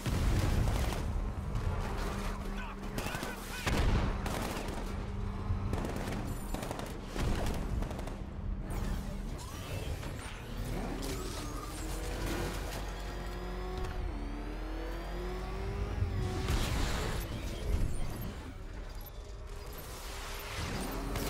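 A powerful engine roars and revs steadily.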